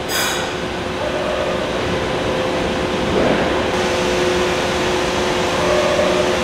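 A train rumbles along the tracks with a steady hum.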